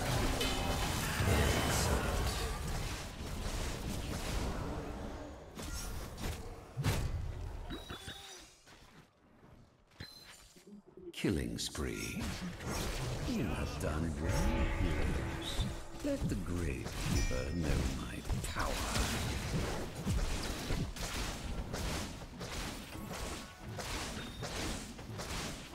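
Spells and weapon hits crackle and thud in a busy fight.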